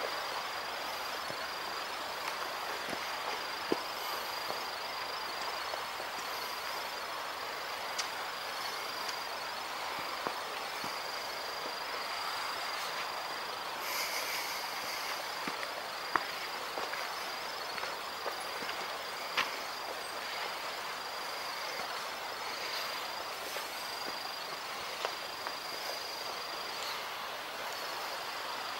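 Footsteps crunch on a stony forest path.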